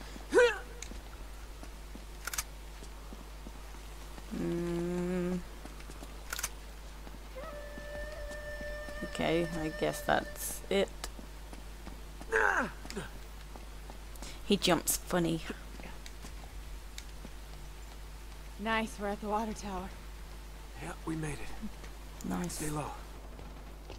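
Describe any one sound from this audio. A young woman talks casually into a microphone, close by.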